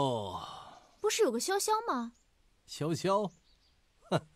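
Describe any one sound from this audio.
A young woman speaks with surprise, close by.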